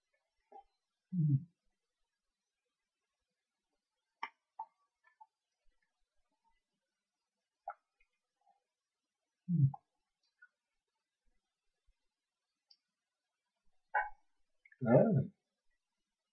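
A man murmurs a few short words close to the microphone.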